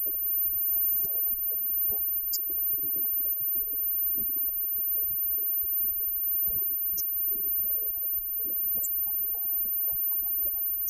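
A rock band plays live with distorted electric guitars.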